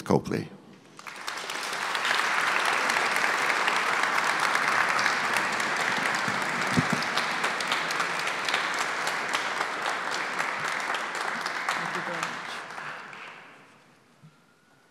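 An audience applauds loudly and the applause fades away.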